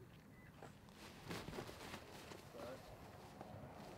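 A large bird flaps its wings.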